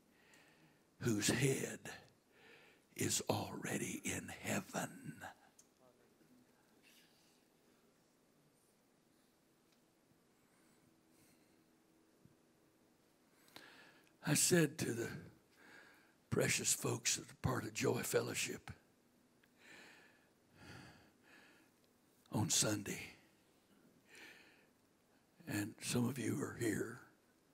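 A middle-aged man speaks into a microphone over loudspeakers in a large room, pausing between phrases.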